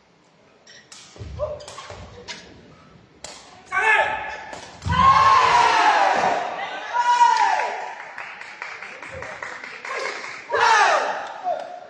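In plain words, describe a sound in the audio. Players kick a ball with sharp thuds in a large echoing hall.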